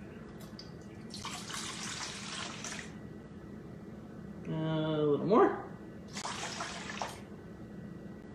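Liquid pours from a jug into a bowl.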